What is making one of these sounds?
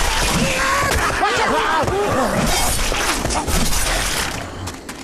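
Heavy blows thud against bodies.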